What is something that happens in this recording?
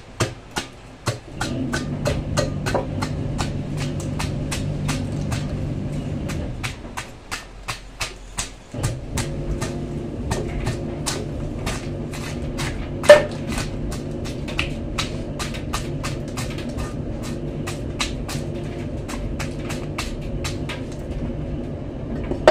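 A cleaver scrapes scales off a large fish in rapid, rasping strokes.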